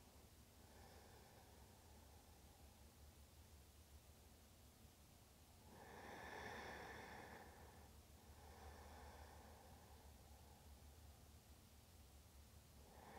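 A young woman hums a soft, long-held chant close by, swelling and fading.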